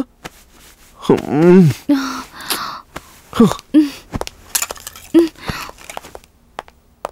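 A young woman speaks in a troubled voice close by.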